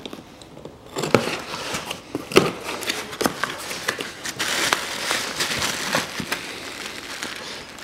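Cardboard box flaps rustle and scrape as they are pulled open.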